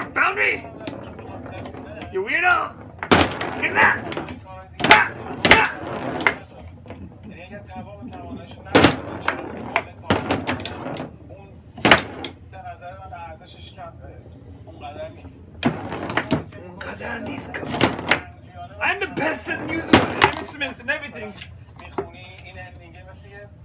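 Foosball rods rattle and thud as players spin them.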